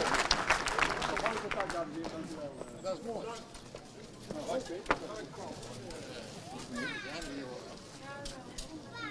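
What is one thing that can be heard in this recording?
Several men and women chat nearby.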